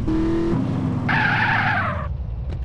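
Tyres screech on pavement.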